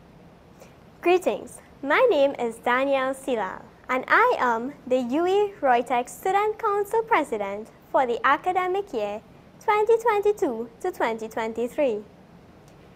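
A young woman speaks brightly through a microphone.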